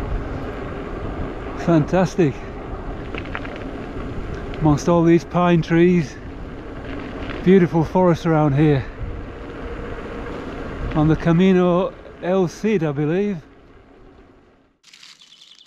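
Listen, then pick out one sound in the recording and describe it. Bicycle tyres crunch and rumble over a gravel road.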